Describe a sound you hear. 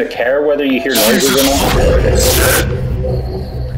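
A monster lets out a loud, harsh roar.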